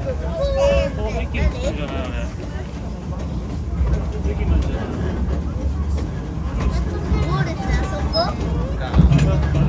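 A small steam locomotive rumbles and rattles steadily along the track.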